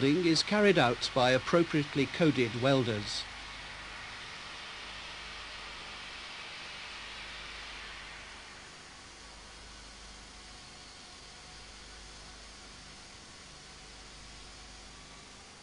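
An electric welding arc crackles and hisses steadily.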